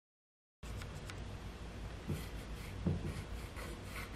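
A screwdriver turns a screw into wood.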